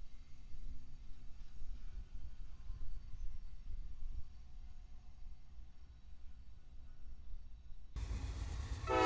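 A freight train rolls slowly along the tracks with a low rumble.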